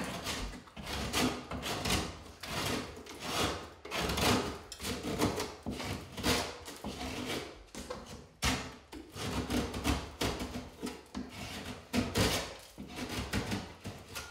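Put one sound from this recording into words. A utility knife scrapes along drywall.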